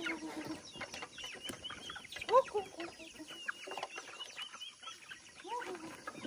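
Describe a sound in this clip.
Young chickens peep shrilly.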